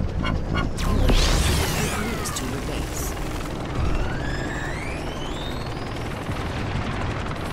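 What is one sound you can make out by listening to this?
A heavy robot's engine rumbles steadily as it drives.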